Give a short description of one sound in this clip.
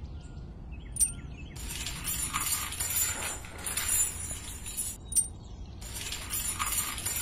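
A small metal chain clinks against a hook.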